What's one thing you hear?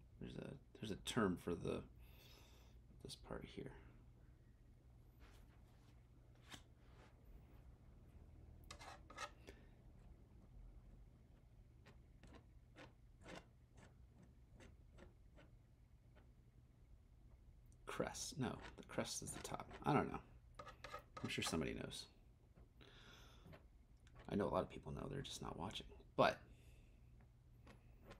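A palette knife taps and scrapes on a canvas.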